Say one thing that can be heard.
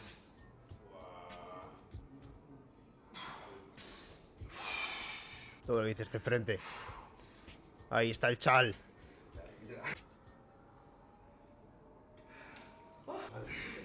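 A man speaks loudly in a room.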